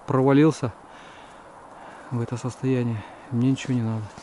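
Pine branches rustle as a hand brushes them aside.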